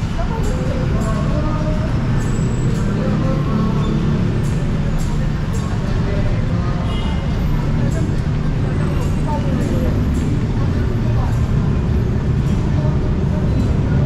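Footsteps tap steadily on a hard walkway.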